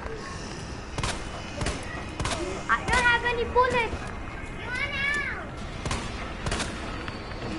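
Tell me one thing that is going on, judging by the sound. A pistol fires sharp, echoing shots one after another.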